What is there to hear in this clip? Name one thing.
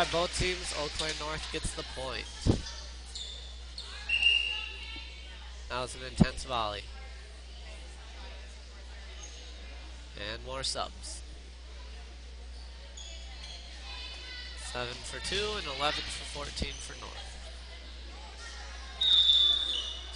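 Spectators cheer and call out.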